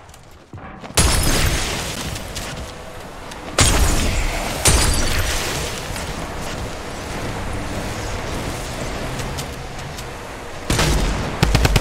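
A gun fires in loud sharp bursts.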